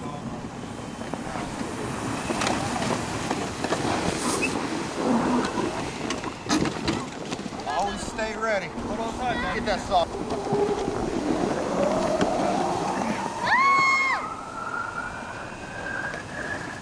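Sleds slide and scrape over snow.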